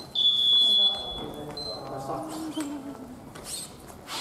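A man calls out in a large echoing hall.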